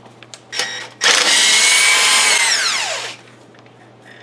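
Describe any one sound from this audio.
A cordless impact wrench whirs loudly in a short burst.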